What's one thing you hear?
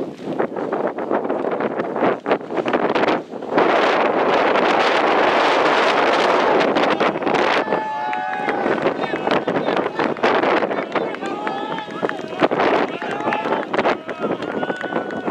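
Wind blows outdoors, rushing steadily across the microphone.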